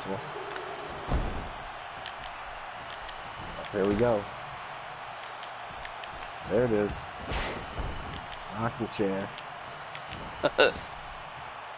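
Bodies slam heavily onto a wrestling mat.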